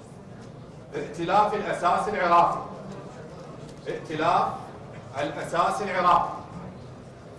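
A man reads out loudly into a microphone.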